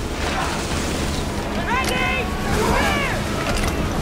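A ship rams into another ship with a heavy crash.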